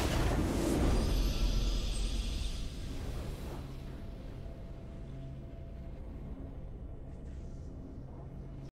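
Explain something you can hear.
A triumphant fanfare plays and slowly fades.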